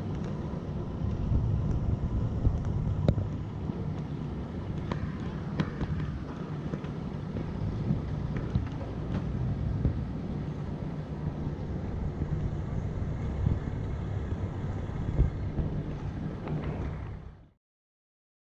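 Water splashes and rushes past a moving boat.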